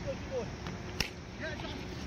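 A bat cracks sharply against a ball outdoors.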